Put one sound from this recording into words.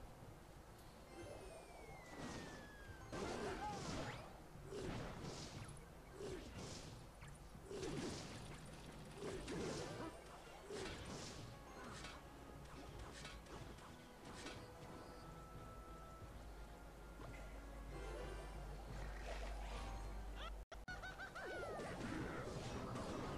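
Battle sound effects clash and crackle from a mobile game.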